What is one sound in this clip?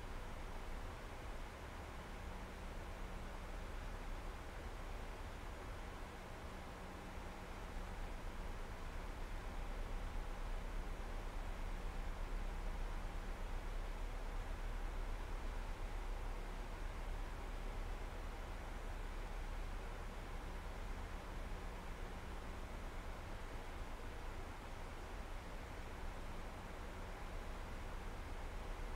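A jet airliner's engines drone with a steady low rushing roar.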